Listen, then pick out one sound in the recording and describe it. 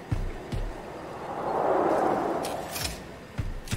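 A soft whooshing burst swells and fades.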